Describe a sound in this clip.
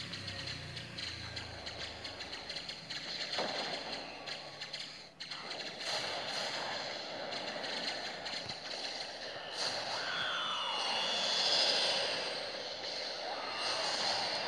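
Blasts burst in a space battle game.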